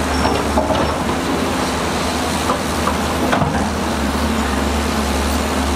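A bulldozer engine rumbles steadily.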